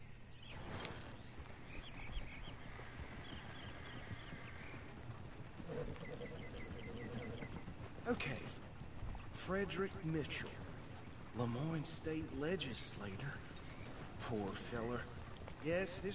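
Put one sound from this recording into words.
A wooden wagon creaks and rattles as it rolls along.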